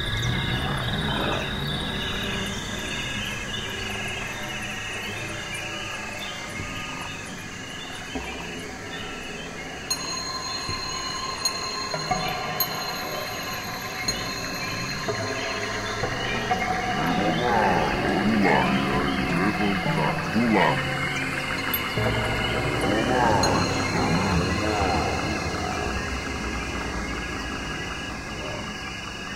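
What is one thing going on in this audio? Electronic music plays with layered, shifting synth tones and gliding notes.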